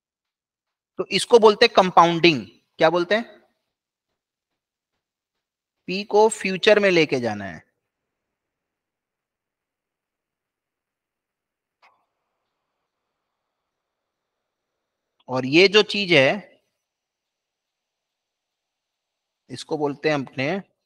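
A man speaks calmly into a microphone, explaining in short phrases with pauses.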